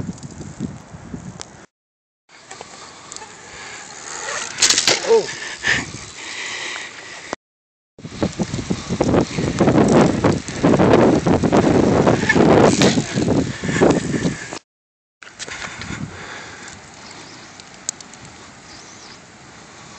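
Bicycle tyres roll across hard pavement.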